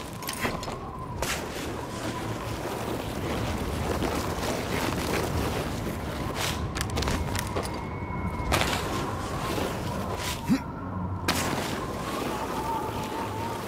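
Boots slide and scrape fast down an icy slope.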